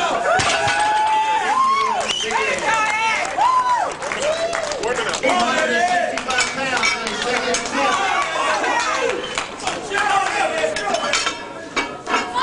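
A crowd of men shouts and cheers with excitement.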